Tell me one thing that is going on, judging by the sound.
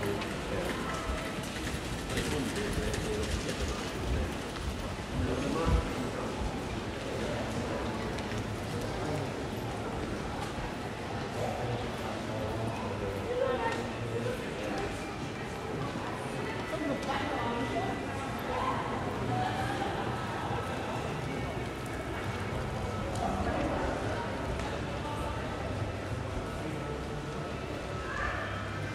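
Distant voices murmur and chatter in an echoing covered walkway.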